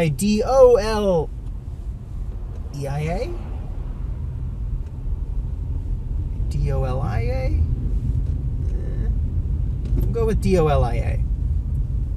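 A man speaks up close in short bursts.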